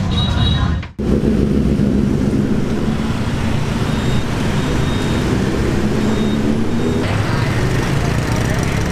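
Motorbike engines hum as they pass along a street.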